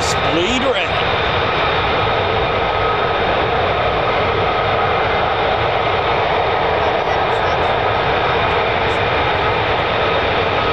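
Jet engines roar steadily nearby, loud and rumbling.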